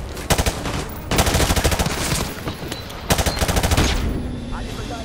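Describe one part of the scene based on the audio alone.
Rifle gunfire bursts out in rapid, sharp shots.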